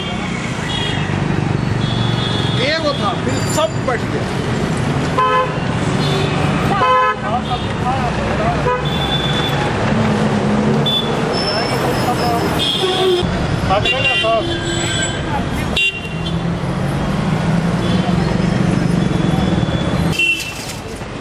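Street traffic and voices bustle outdoors.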